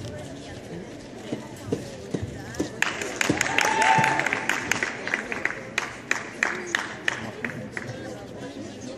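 Feet thump and stamp on a padded mat in a large echoing hall.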